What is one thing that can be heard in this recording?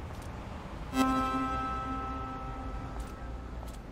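A bicycle bell rings once and slowly fades.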